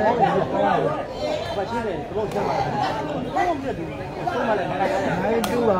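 A large crowd of spectators chatters and calls out outdoors.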